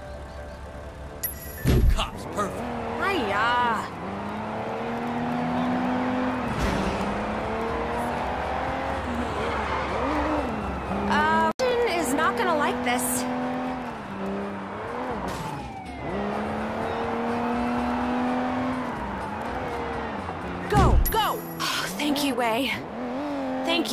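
A car engine revs and roars as it speeds along, rising and falling in pitch.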